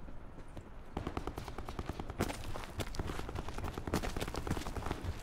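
Footsteps thud quickly and steadily on hard ground.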